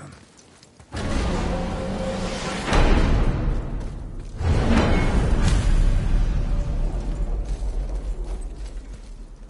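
A deep rumbling roar swells and slowly fades.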